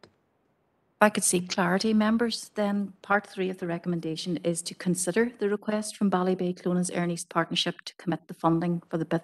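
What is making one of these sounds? A woman speaks steadily into a microphone.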